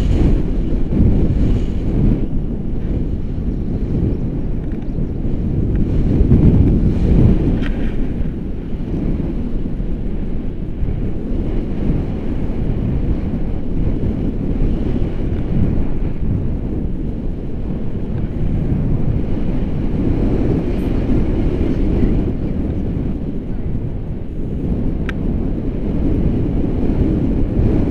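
Strong wind rushes loudly past outdoors.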